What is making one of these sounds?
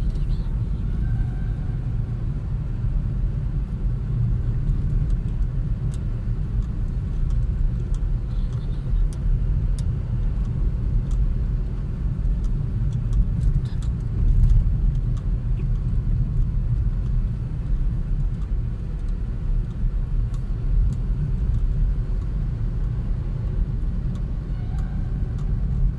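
Tyres roll over a rough, snowy road.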